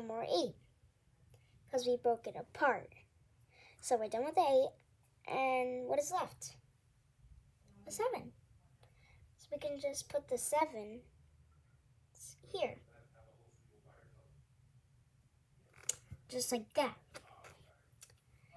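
A young girl talks calmly close by, explaining in short phrases.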